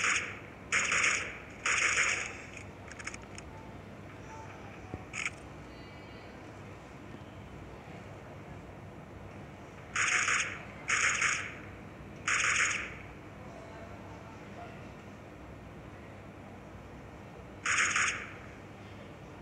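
A rifle fires loud short bursts of shots.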